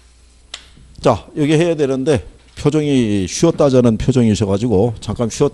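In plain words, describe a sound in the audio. A middle-aged man speaks with animation through a microphone.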